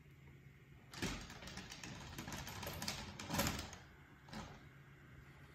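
A small robot's mecanum wheels whir across a tile floor.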